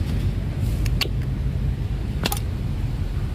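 Pruning shears snip through roots with sharp clicks.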